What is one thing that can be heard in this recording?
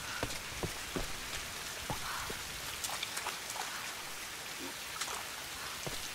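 Footsteps scuff on wet ground.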